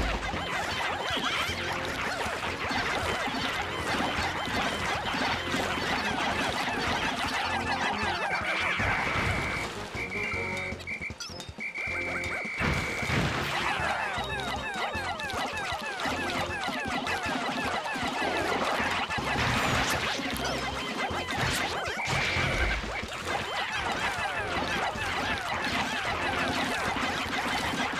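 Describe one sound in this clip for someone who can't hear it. A large creature thuds and stomps as it is attacked.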